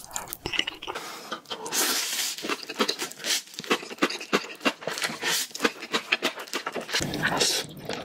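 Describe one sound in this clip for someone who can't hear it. A man slurps noodles loudly close to the microphone.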